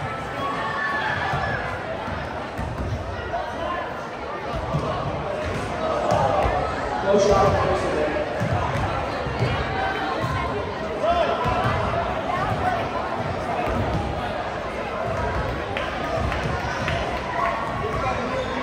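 Basketballs bounce on a wooden gym floor.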